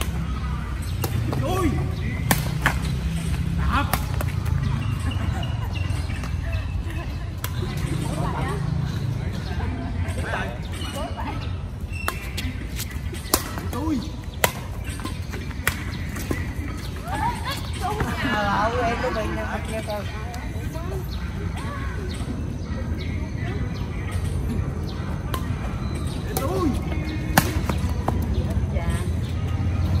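Adults and a girl call out and chatter with animation, at a distance outdoors.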